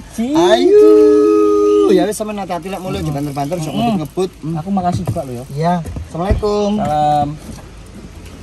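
A woman talks with animation close by inside a car.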